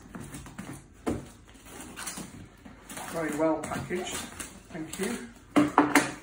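Scissors snip and slice through packing tape on a cardboard box, close by.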